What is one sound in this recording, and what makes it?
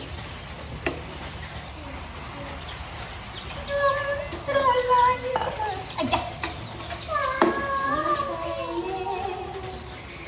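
A wooden spoon scrapes and clinks against a metal pot.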